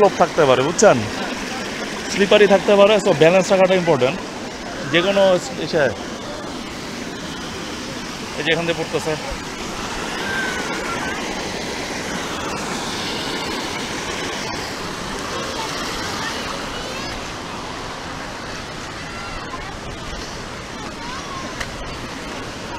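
Water rushes and splashes over rocks.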